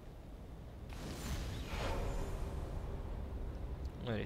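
A burst of flame whooshes and roars.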